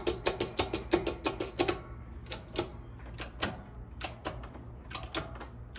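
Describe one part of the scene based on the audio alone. Metal clicks and taps sharply as an arbor press is worked on a coin.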